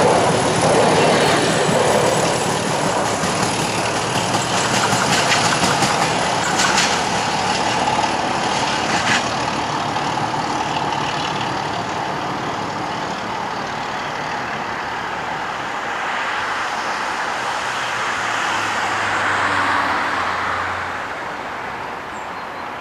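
A passenger train rumbles along the track, moving steadily away.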